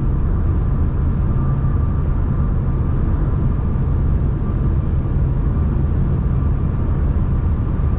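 Tyres roar steadily on the road surface.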